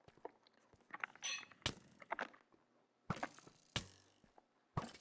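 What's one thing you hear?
A pickaxe chips at stone.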